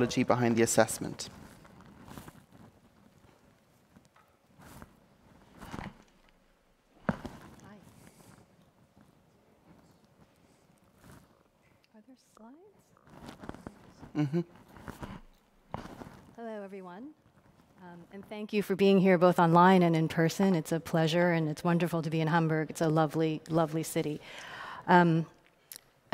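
A woman speaks into a microphone, pausing often.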